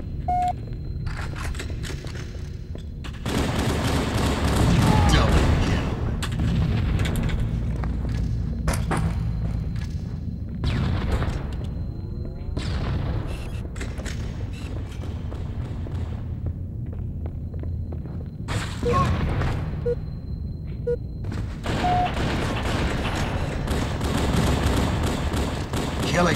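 Gunfire rattles from a video game.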